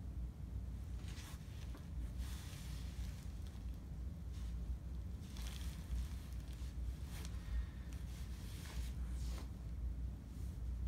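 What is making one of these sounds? Hands rub and brush against cloth.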